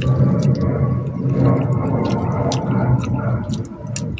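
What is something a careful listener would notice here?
A young woman chews food with soft smacking sounds.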